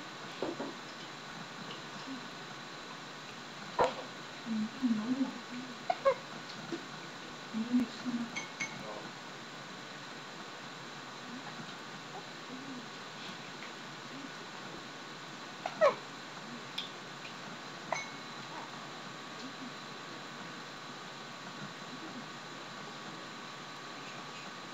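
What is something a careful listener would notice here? Baby clothes rustle as a baby waves its arms.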